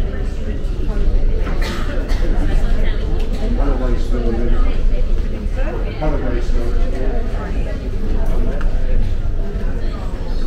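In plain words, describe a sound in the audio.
Footsteps tap on a hard floor nearby.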